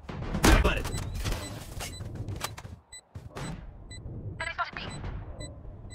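A planted bomb beeps at a steady pace in a video game.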